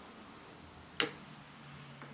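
Wire cutters snip through a small nail with a sharp click.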